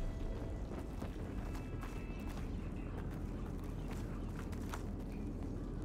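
Footsteps crunch on a dirt floor.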